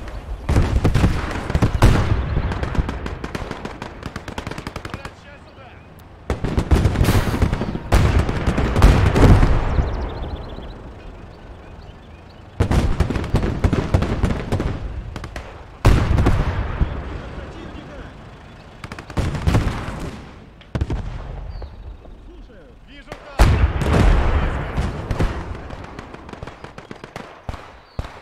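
Heavy explosions boom and rumble, echoing away.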